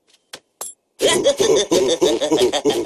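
A man laughs gleefully in a cartoonish voice.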